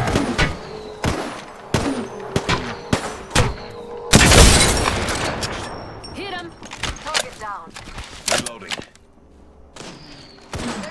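A rifle fires sharp, loud shots in quick succession.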